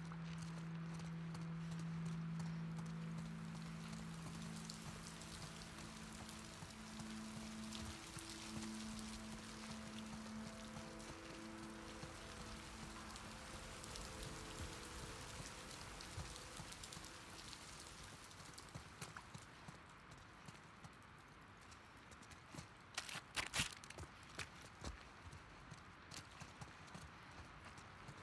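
Footsteps tread on a hard tiled floor.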